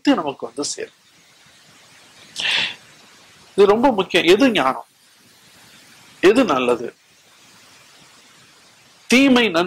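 An elderly man speaks slowly and solemnly into a microphone, with pauses.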